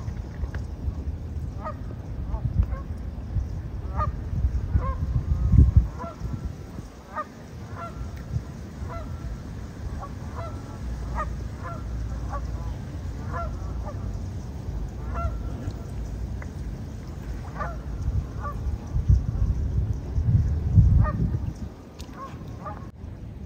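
A swan rustles its feathers as it preens close by.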